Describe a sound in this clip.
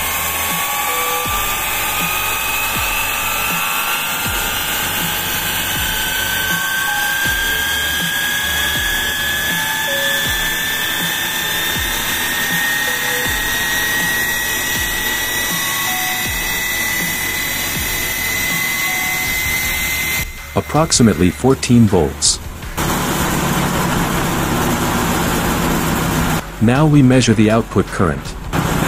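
A steam jet hisses.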